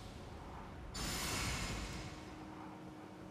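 A magical shimmer swells and fades.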